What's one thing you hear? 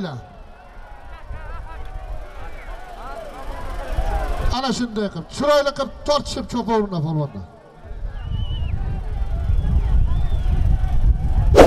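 A large crowd of men shouts and calls out outdoors.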